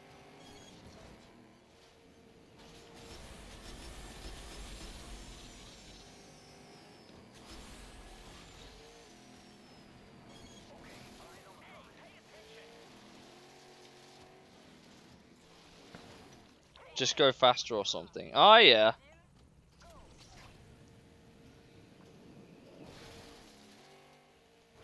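A racing car engine hums and revs steadily.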